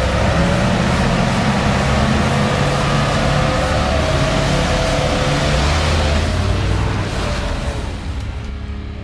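A truck engine roars and revs hard close by.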